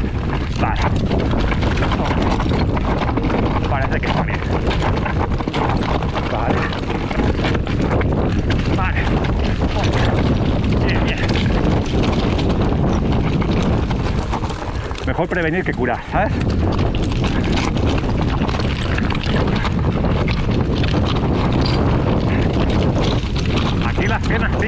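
Bicycle tyres crunch and rattle over loose stones.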